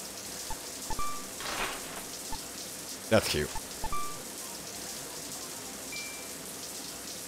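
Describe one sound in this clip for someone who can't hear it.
Short electronic menu chimes beep.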